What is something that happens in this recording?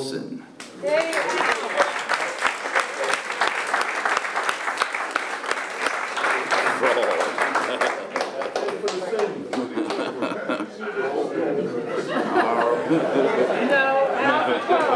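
A crowd applauds steadily.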